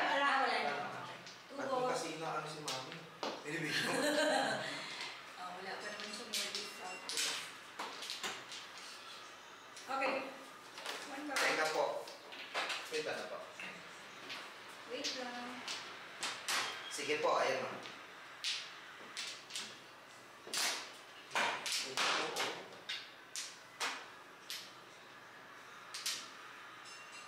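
Mahjong tiles click and clack as they are placed and moved on a table.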